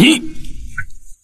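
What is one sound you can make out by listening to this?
A man speaks a short word in a strained voice, close by.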